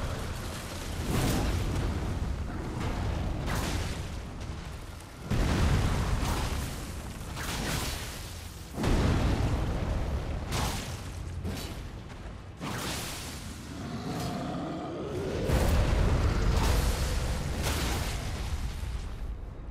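A huge creature stomps and thuds on the ground.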